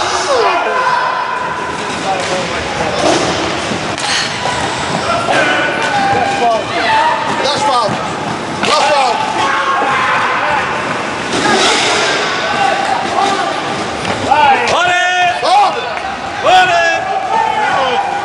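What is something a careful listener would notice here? Children shout and call out loudly in a large echoing hall.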